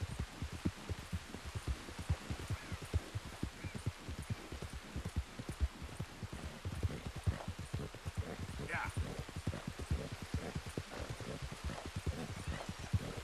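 A horse gallops with heavy, quick hoofbeats.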